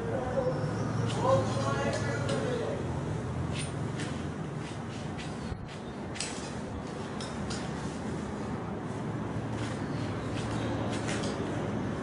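Scissors snip through paper.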